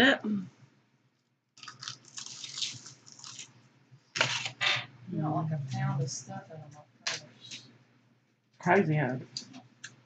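A woman chews food noisily, with wet smacking sounds.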